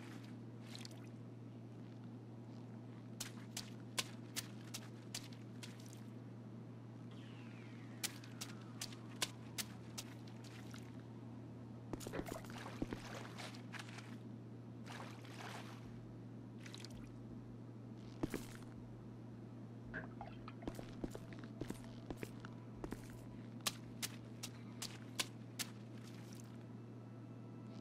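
A mop swishes across a tiled floor.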